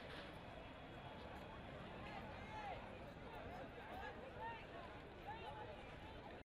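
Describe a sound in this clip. A crowd of men and women talks and calls out outdoors.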